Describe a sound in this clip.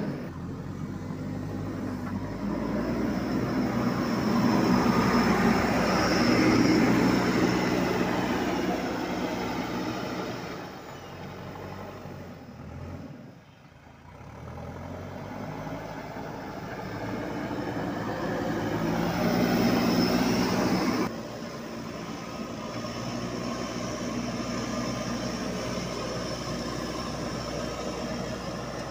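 A diesel engine rumbles and roars steadily close by.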